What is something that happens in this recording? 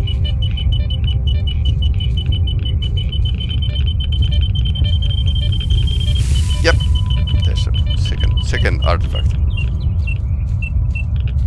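A detector beeps rapidly and steadily.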